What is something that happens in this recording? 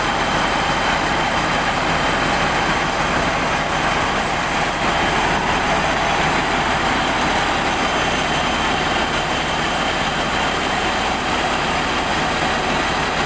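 A harvester's engine runs loudly and steadily close by.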